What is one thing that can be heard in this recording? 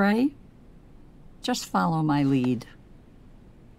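An elderly woman speaks gently and close by.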